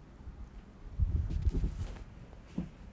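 Low thumps and rustling sound close to a phone microphone as it moves.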